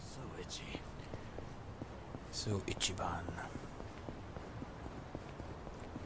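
Footsteps hurry over pavement.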